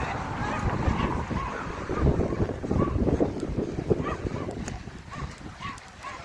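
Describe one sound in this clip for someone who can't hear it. Horse hooves thud softly on grass as horses walk.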